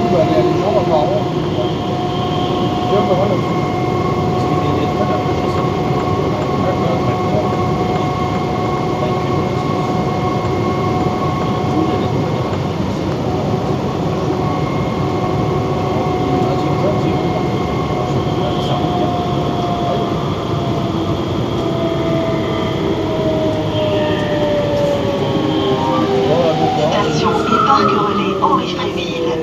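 A train rumbles steadily along a track through a tunnel.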